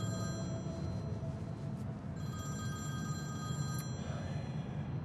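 A phone rings with a repeating tune.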